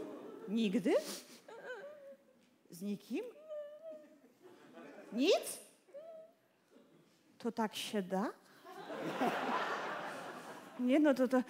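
A woman wails and whimpers theatrically through a headset microphone.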